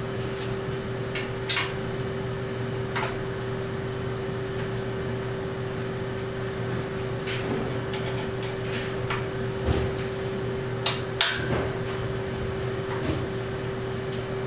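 Metal tubes clank and knock.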